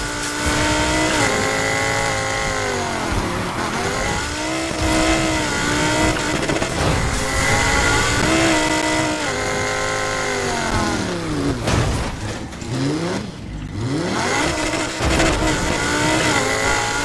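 A sports car engine roars loudly, its pitch rising and falling with gear changes.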